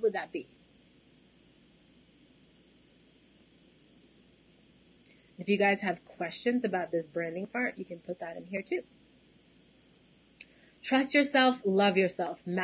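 A young woman speaks calmly and close to a microphone, in bursts with pauses.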